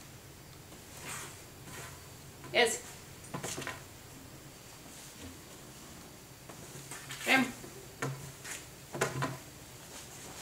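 Cloth rustles and flaps as clothes are laid down and picked up.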